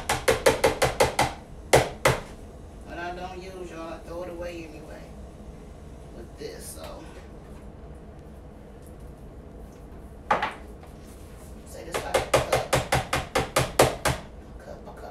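Crunchy food crackles loudly as a woman bites and chews it.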